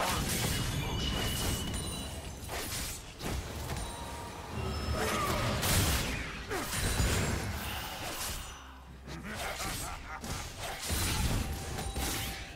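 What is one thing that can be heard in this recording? Magic blasts and hits crackle and burst in a busy fight.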